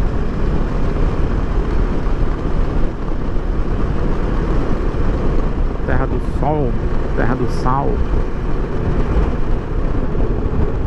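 Wind roars loudly against a helmet as a motorcycle rides at speed.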